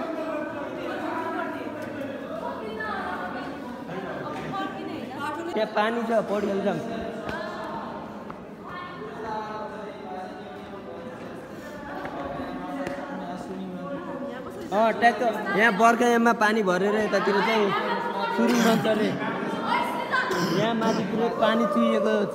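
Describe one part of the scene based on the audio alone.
Young men talk close by, their voices echoing in a hollow space.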